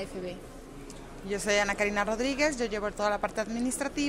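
A woman answers animatedly into a close microphone.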